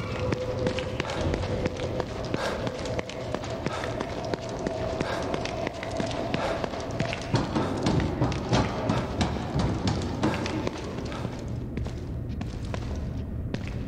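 Quick footsteps run on a hard floor.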